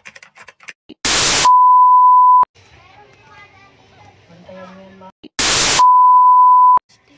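A burst of static hiss gives way to a steady high beep.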